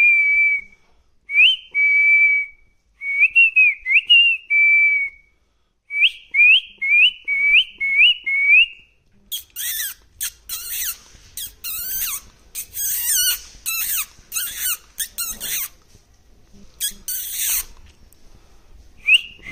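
A parrot whistles in short, clear, rising notes close by.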